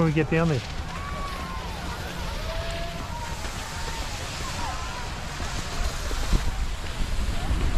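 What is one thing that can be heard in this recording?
Skis scrape and hiss over packed snow close by.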